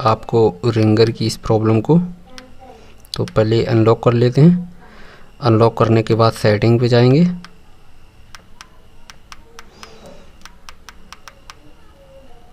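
Buttons on a phone keypad click as they are pressed.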